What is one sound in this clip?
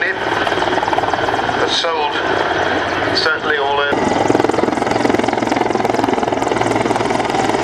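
A helicopter's rotor blades thump steadily overhead as it flies past.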